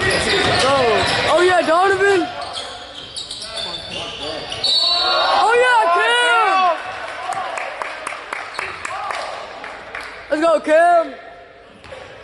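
Basketball shoes squeak sharply on a gym floor.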